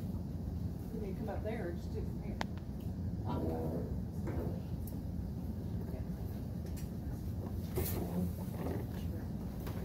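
A woman speaks at a distance in a room that echoes.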